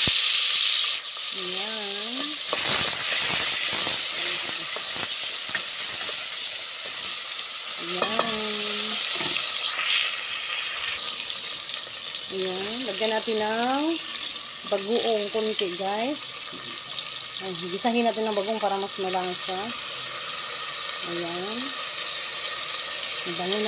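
Food simmers and hisses steadily in a pot.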